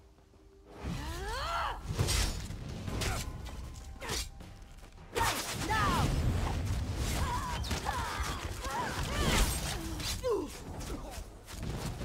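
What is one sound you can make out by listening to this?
Creatures snarl and shriek as they are hit.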